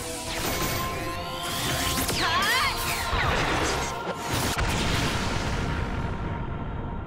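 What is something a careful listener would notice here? Magical energy blasts whoosh and crackle loudly.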